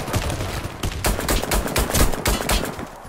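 A pistol fires in quick single shots.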